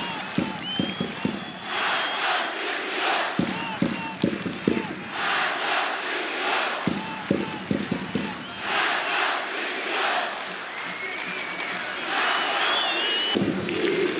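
A large stadium crowd claps together in slow, even beats.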